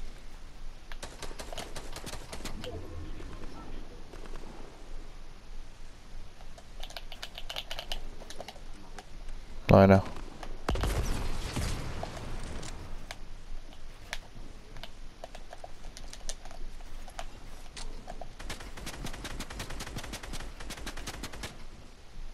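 Footsteps patter quickly on grass and wood.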